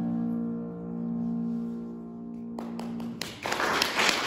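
A piano plays along.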